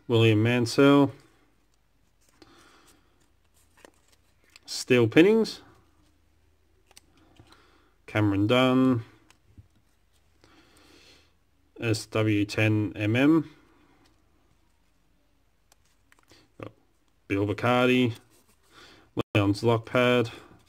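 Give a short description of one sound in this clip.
Small paper strips rustle and crinkle between fingers.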